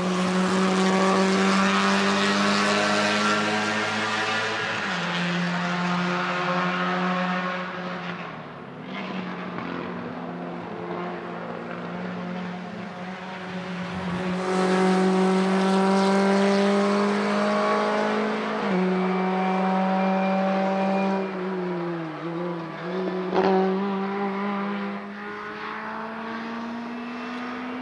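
A racing car's engine roars loudly, holding a high pitch and dropping at each gear change.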